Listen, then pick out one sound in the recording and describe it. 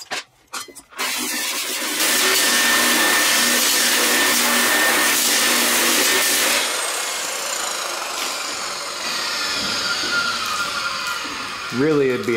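An angle grinder whirs loudly against metal, then winds down.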